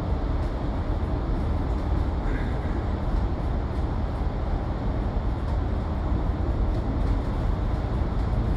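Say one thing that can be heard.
A vehicle engine rumbles steadily, echoing in a tunnel.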